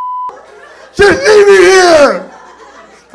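A young man shouts loudly into a microphone.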